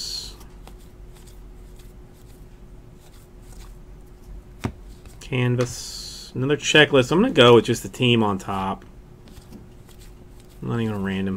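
Trading cards rustle and flick as they are sorted by hand.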